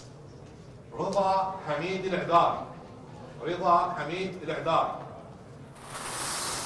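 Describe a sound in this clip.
A man announces clearly into a microphone.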